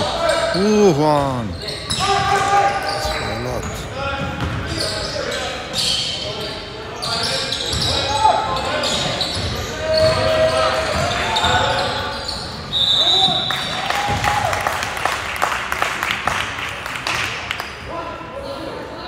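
Young men shout and call out across an echoing gym.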